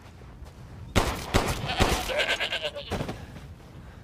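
Pistol shots fire loudly, one after another.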